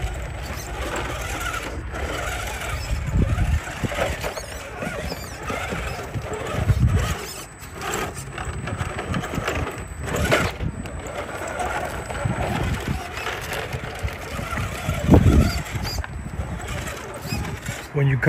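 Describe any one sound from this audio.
Rubber tyres scrape and crunch over rough rock.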